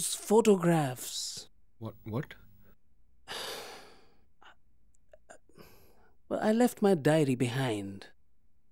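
A man speaks tensely, close by.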